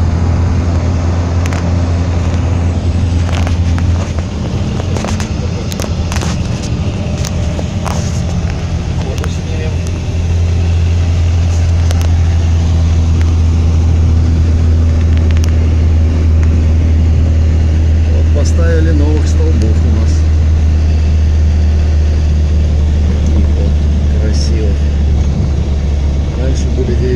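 A vehicle engine drones steadily, heard from inside the cab.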